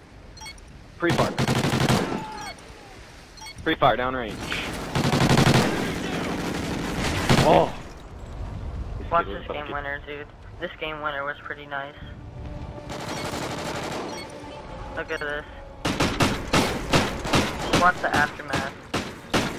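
Rapid gunshots rattle in quick bursts.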